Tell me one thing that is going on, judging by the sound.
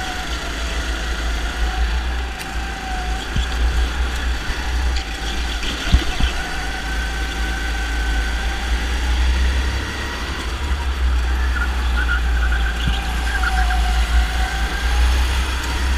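A go-kart engine buzzes close by, its pitch rising and falling with speed.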